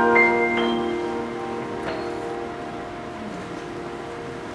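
A piano's final chord rings out and slowly fades.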